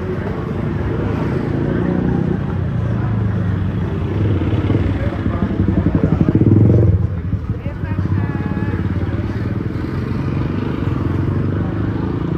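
Motorbike engines hum and putter along a busy street.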